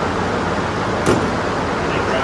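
A tool knocks against metal.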